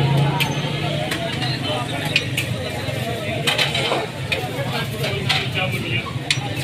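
A metal spatula scrapes and clicks against a griddle.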